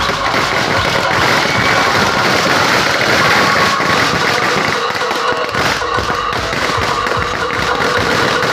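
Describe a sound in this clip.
A crowd of young men cheers and shouts loudly outdoors.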